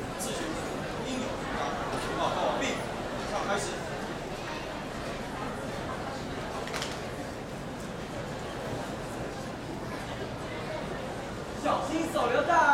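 A crowd of young people murmurs outdoors.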